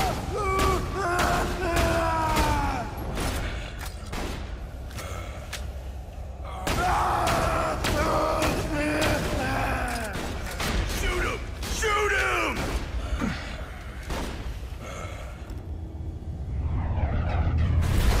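Rapid gunfire bursts out again and again.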